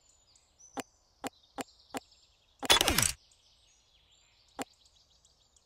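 Short menu clicks sound from a game.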